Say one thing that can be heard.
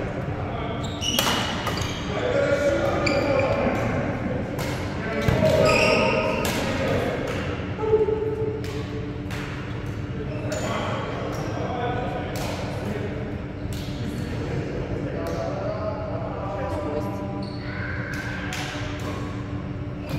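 Adult men and women talk and call out across an echoing hall.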